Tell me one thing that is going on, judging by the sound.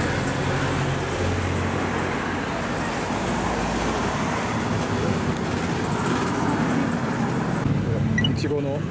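A crowd murmurs and chatters nearby outdoors.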